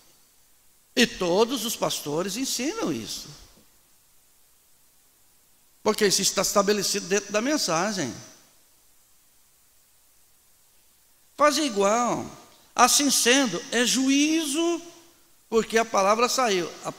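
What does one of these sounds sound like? A middle-aged man preaches loudly and forcefully through a microphone, in bursts with pauses between.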